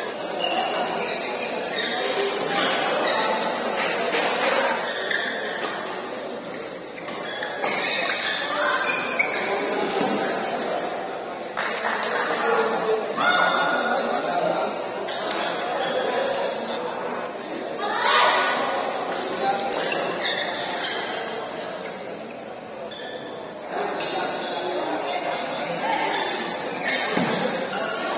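Shuttlecocks are struck sharply with rackets in quick rallies.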